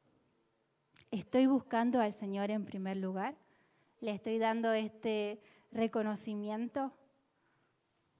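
A young woman sings into a microphone, amplified through loudspeakers.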